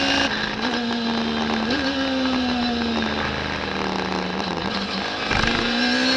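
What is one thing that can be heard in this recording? A racing car engine drones loudly up close, its pitch slowly dropping as it slows, then climbing again.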